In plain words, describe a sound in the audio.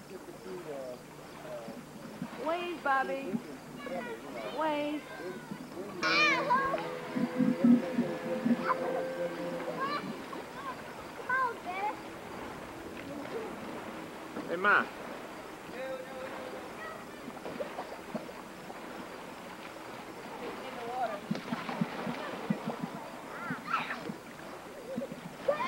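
Young children shout and call out nearby.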